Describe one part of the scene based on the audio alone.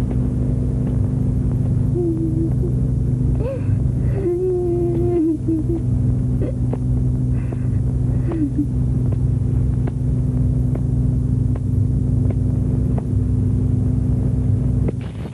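Footsteps walk slowly on a hard floor, coming closer.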